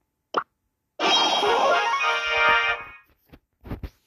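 A bright electronic jingle plays with a shimmering flourish.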